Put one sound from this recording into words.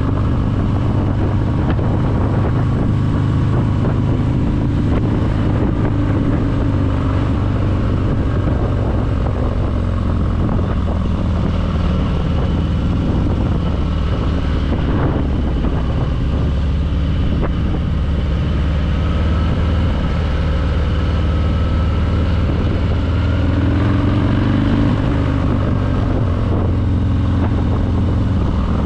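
Wind buffets the rider.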